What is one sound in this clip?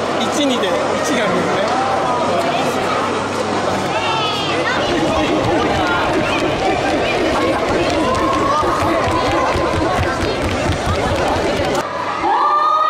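A crowd of young people chatters and shouts loudly in a large echoing hall.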